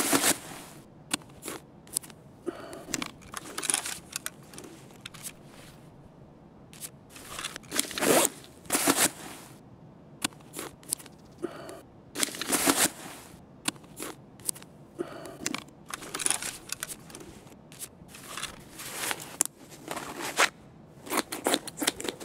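Cloth and gear rustle in short bursts as items are handled.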